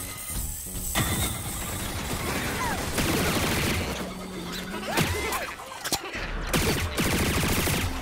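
A cartoon gun fires rapid popping shots.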